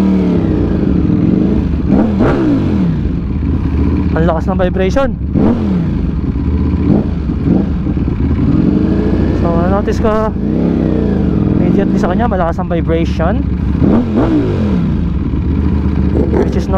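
A motorcycle engine rumbles close by and revs up and down again and again.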